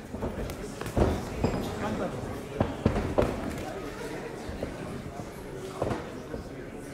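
Boxing gloves thud against each other and against a body in a large echoing hall.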